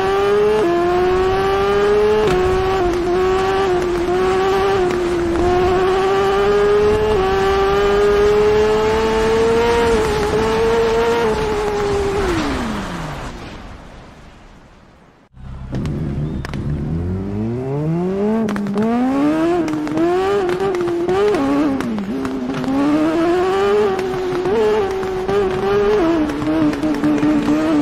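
A motorcycle engine roars at high revs, its pitch climbing and dropping through gear changes.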